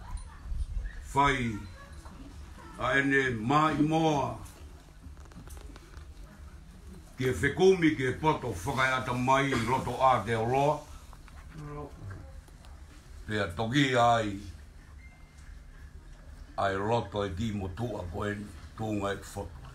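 A man sings loudly nearby in phrases.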